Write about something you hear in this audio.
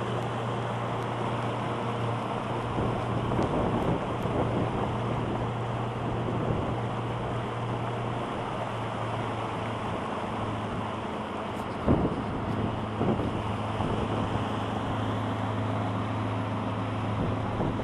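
Water rushes and splashes against a moving boat's hull.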